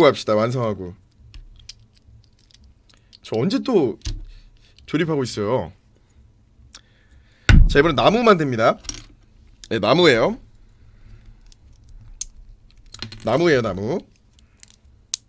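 Small plastic bricks click together.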